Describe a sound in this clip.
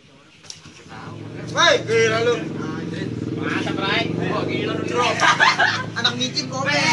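A young man shouts and laughs with animation nearby.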